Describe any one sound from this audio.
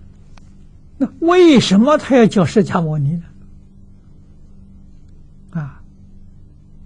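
An elderly man speaks calmly and warmly into a clip-on microphone.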